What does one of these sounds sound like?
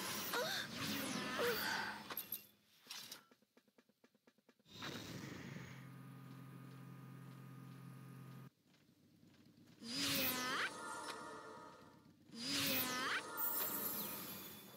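A magic spell chimes and whooshes with rising shimmering tones.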